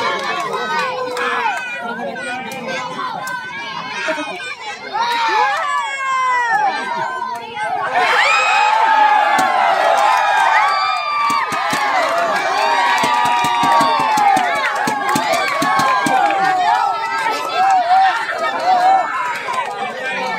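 A crowd of spectators shouts and cheers loudly outdoors.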